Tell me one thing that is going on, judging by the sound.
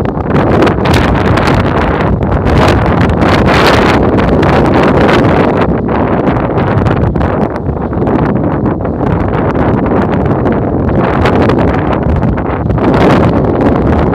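Strong wind blusters loudly across open ground, buffeting against the microphone.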